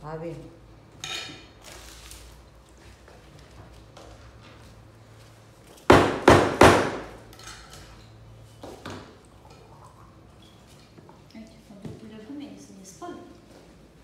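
Food and dishes clink and rustle on a table.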